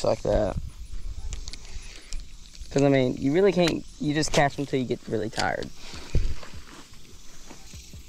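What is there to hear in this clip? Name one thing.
A fishing reel clicks and whirs.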